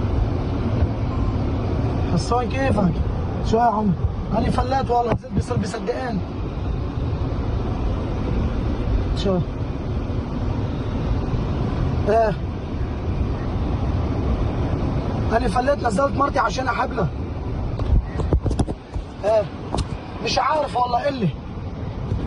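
A car engine rumbles steadily as the car drives along.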